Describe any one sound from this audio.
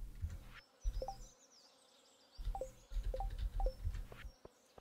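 Short bright game chimes ping several times.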